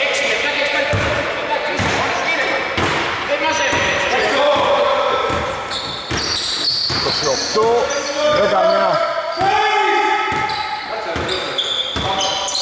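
Young men shout and call out across the court.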